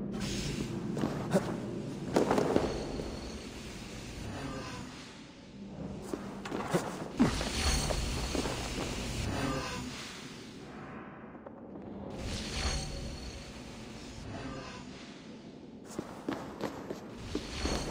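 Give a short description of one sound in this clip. Footsteps scrape on stone.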